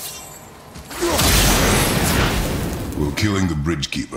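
A burst of fire roars loudly.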